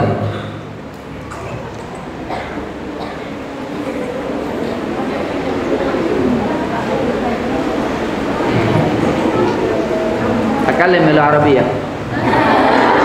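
A man speaks into a microphone, heard through loudspeakers.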